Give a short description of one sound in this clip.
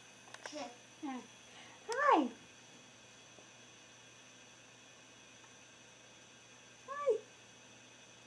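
A baby squeals and babbles in short, high bursts close by.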